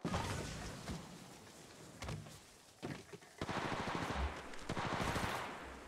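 Quick footsteps patter and thud on a hard surface.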